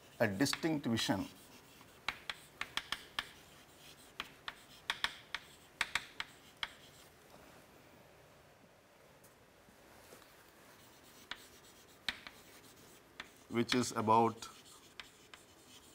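Chalk taps and scrapes on a board in quick strokes.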